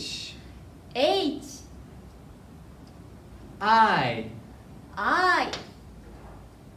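A young woman repeats single letters in a bright, cheerful voice, close by.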